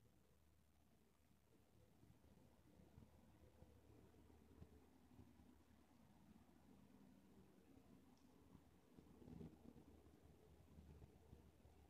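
Yarn rustles softly as a crochet hook pulls it through loops.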